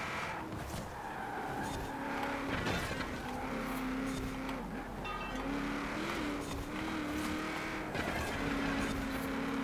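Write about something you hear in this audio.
Tyres hiss over snowy, icy road.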